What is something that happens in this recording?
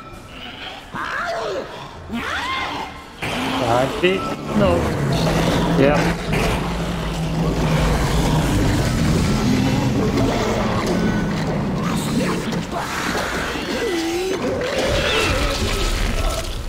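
A monstrous creature shrieks and snarls.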